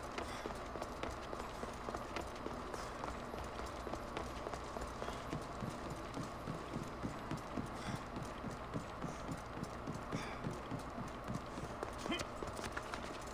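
Footsteps patter quickly on a stone floor.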